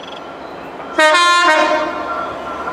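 A diesel locomotive sounds a five-tone horn.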